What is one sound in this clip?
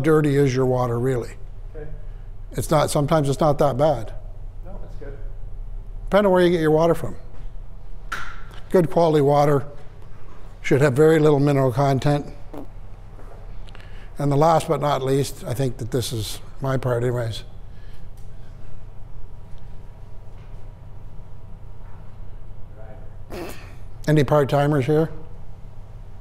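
An older man speaks calmly in bursts with pauses, in a room with some echo.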